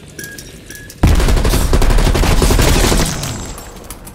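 A rifle fires in a loud rapid burst.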